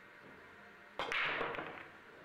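A cue ball smashes hard into a racked set of billiard balls.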